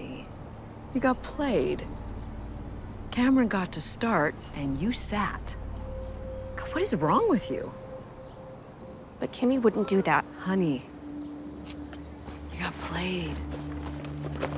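A middle-aged woman speaks close by with animation.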